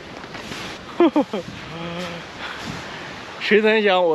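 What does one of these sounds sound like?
A young man laughs briefly.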